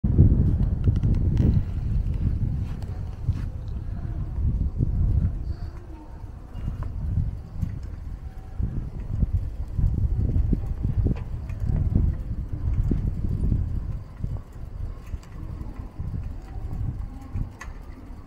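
Wind rumbles and buffets across a microphone outdoors.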